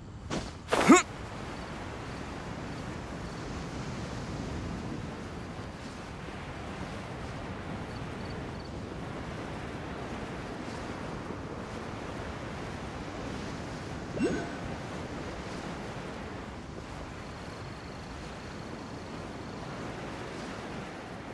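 Wind rushes steadily past a glider.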